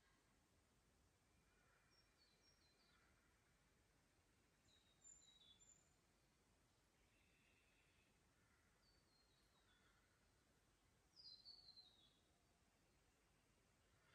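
A shallow creek trickles softly over stones.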